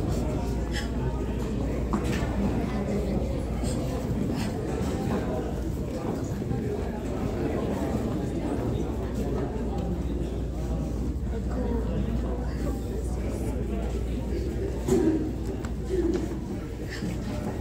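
A crowd of adults murmurs quietly.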